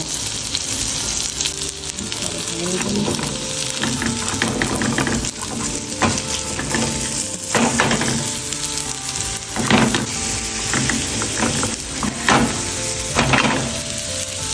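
Meat patties sizzle and crackle in a hot pan.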